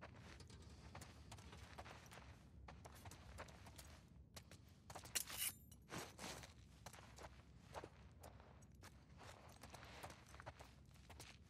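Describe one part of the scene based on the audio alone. Footsteps crunch softly over debris on a hard floor.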